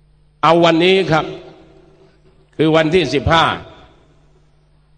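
A middle-aged man speaks loudly and forcefully through a microphone and loudspeakers, his words echoing outdoors.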